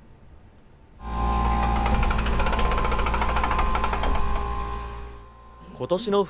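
A floor polishing machine whirs with a steady hum.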